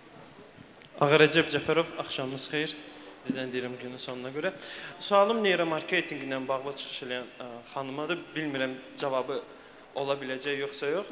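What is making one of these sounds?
A young man asks a question into a handheld microphone, speaking with animation.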